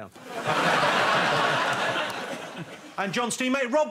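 An audience laughs and cheers loudly.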